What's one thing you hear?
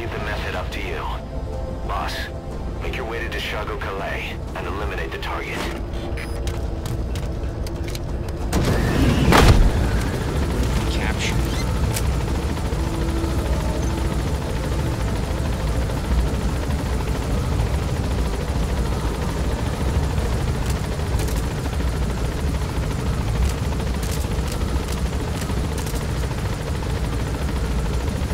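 A helicopter's engine and rotor drone in flight.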